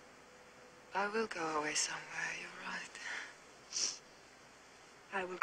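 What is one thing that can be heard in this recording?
A young woman speaks softly and sadly close by.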